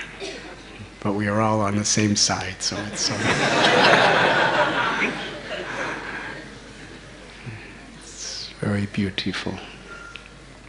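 A middle-aged man speaks cheerfully into a microphone.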